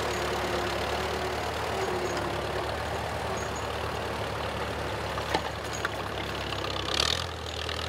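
A tractor engine hums steadily nearby.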